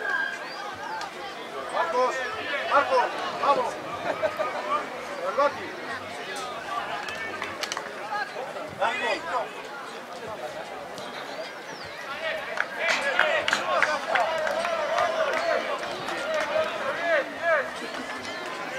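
Spectators chatter and cheer outdoors.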